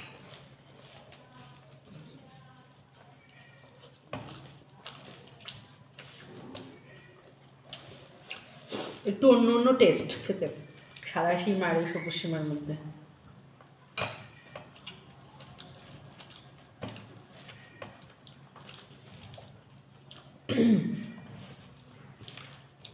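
A young woman mixes food softly with her hand.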